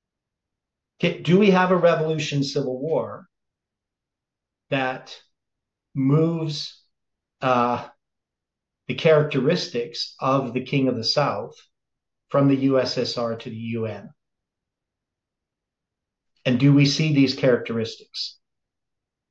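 An elderly man speaks calmly and closely into a microphone, in short phrases with pauses.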